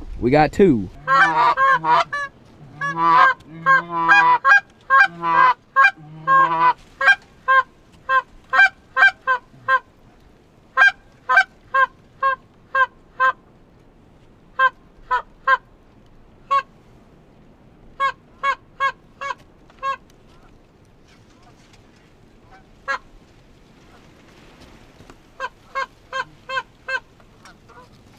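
Geese honk repeatedly as a flock flies overhead outdoors.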